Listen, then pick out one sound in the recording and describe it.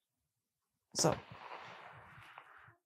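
A hand brushes lightly over cards on a table.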